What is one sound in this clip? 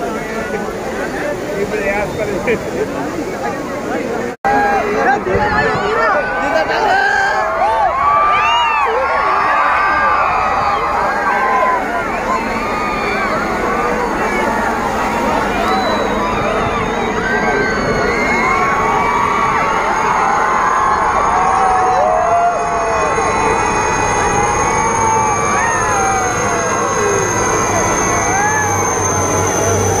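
A large outdoor crowd of men and women chatters and shouts excitedly.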